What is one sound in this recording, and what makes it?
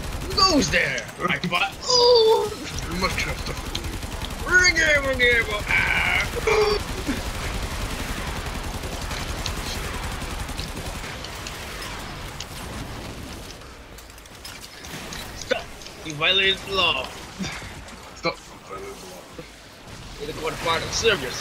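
Gunfire and blasts from a video game ring out.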